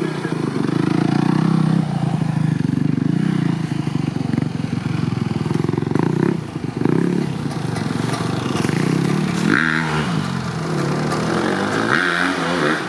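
A dirt bike engine revs and putters loudly close by.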